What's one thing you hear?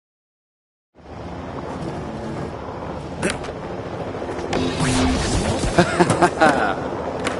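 Skateboard wheels roll and clatter over concrete.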